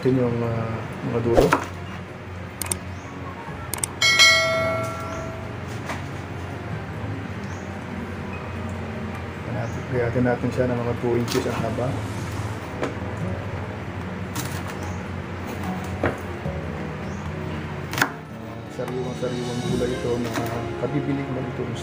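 A knife chops green beans on a wooden board with sharp knocks.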